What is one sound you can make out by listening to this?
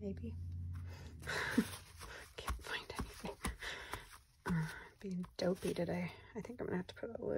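Paper and fabric rustle and crinkle as hands press and smooth them.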